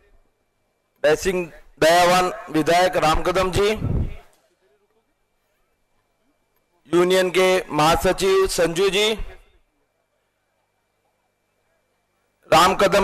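A man speaks with animation through a microphone and loudspeakers, in bursts with pauses.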